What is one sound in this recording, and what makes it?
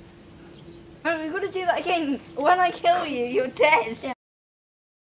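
A second young boy answers with animation close by.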